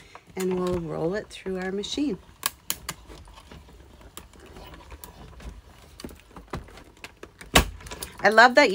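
Plastic plates click and slide into a hand-cranked die-cutting machine.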